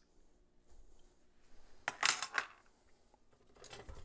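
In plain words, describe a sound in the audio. A jar lid is twisted open and clinks.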